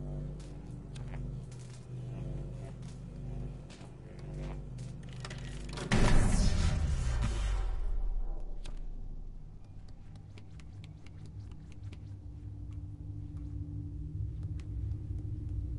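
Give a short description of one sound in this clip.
Small footsteps patter on a hard floor.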